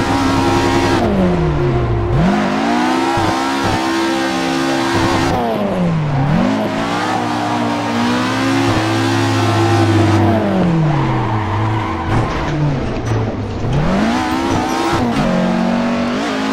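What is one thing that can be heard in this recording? A car engine revs hard, rising and falling as gears shift.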